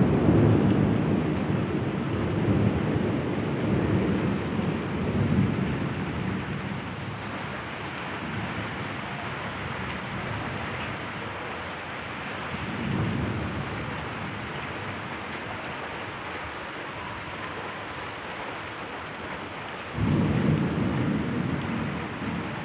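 Heavy rain pours down steadily.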